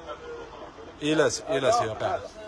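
A man speaks loudly and with animation close by.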